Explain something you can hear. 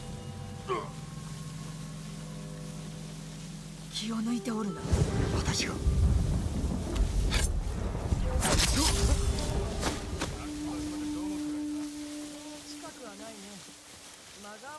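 Wind gusts strongly through tall grass outdoors.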